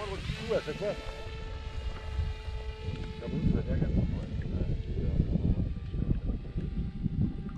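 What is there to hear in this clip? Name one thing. Wind blows across open water and rumbles against the microphone.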